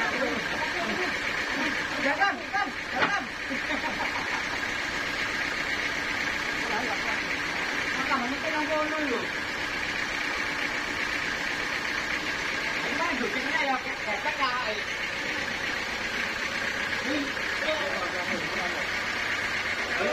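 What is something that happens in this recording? A sawmill machine hums steadily throughout.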